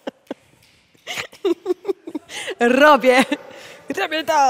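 A young woman talks and laughs with animation.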